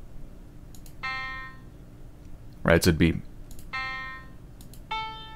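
Single electronic piano notes sound, one at a time.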